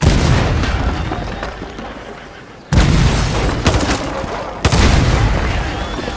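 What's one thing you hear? A cannon fires with a deep boom that rolls away.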